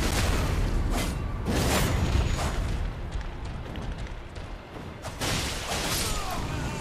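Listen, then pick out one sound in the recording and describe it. Heavy blows land with loud crashing impacts.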